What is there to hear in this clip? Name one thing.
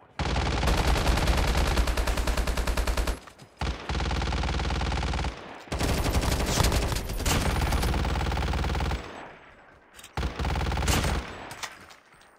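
Automatic gunfire rattles in rapid, loud bursts.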